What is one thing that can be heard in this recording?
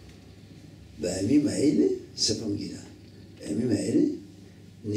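An elderly man speaks calmly into a microphone, reading out.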